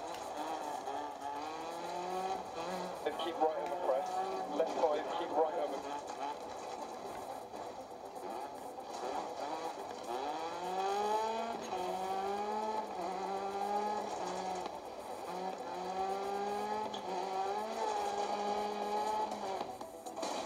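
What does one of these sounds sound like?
A rally car engine revs hard, rising and falling in pitch as gears change.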